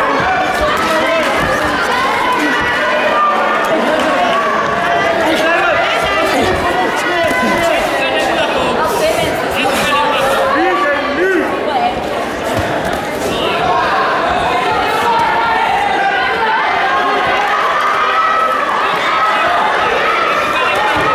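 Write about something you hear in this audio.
Boxing gloves thud against bodies in quick blows.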